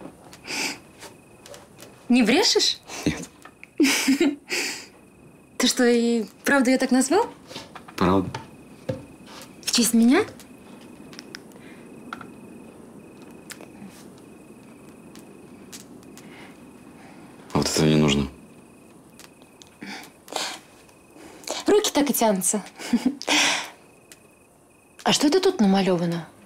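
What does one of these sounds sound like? A young woman talks playfully and giggles close by.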